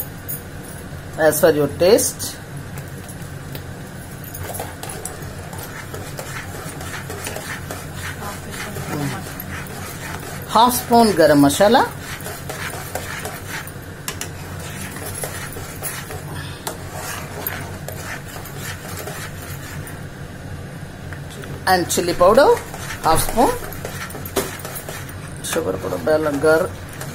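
A spatula scrapes and stirs thick sauce in a pan.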